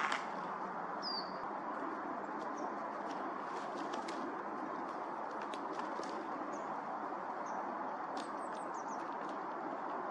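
A bird chirps now and then outdoors.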